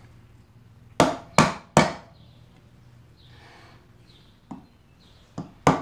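A mallet strikes a chisel into wood with sharp knocks.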